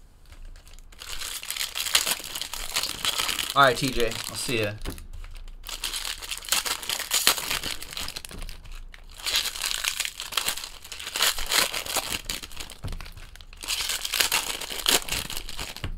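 Plastic wrappers crinkle and tear as packs are opened.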